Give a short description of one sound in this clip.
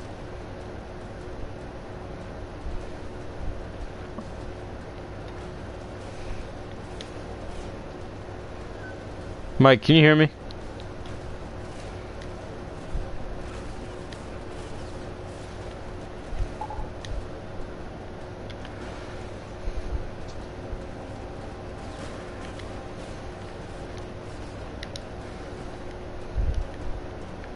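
Footsteps thud quickly on hard surfaces.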